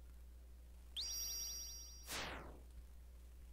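A high shimmering chime rings and then sweeps down in pitch.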